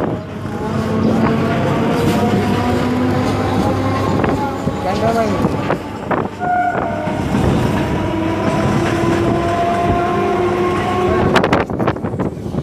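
A train rumbles along the rails at speed.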